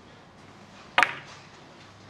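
A cue sharply strikes a billiard ball.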